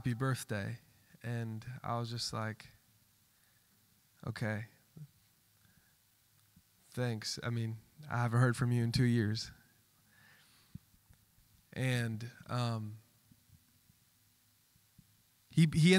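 A man speaks calmly into a microphone, heard through loudspeakers in a large room, with pauses between phrases.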